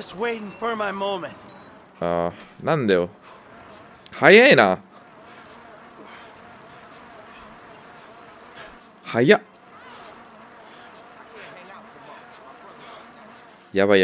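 A bicycle rolls along a paved path with a soft whir of tyres.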